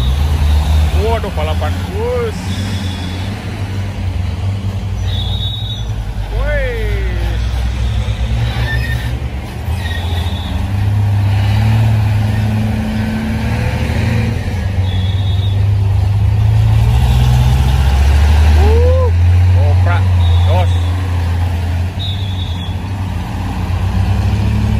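Heavy truck diesel engines rumble and idle close by.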